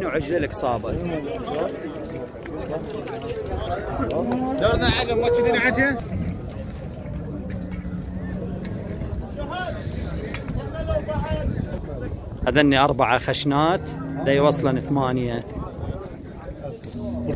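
Men talk loudly nearby in a busy outdoor crowd.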